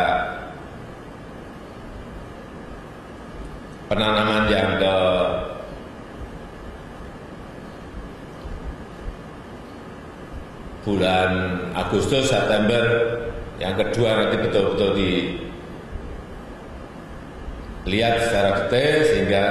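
A middle-aged man speaks calmly into a microphone, in short phrases with pauses.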